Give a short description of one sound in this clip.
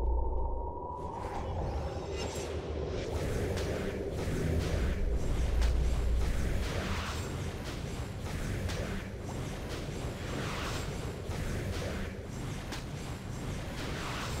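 Sword strikes and spell blasts clash rapidly in a fight.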